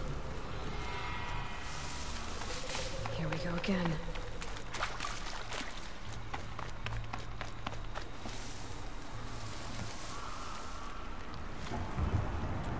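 Footsteps rustle through dense plants.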